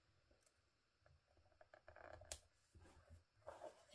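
A sticker peels off a backing sheet with a soft crackle.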